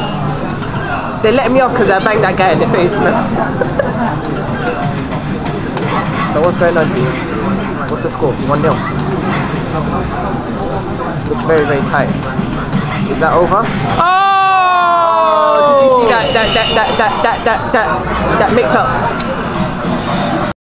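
Fighting game punches and kicks land with sharp thuds through a loudspeaker.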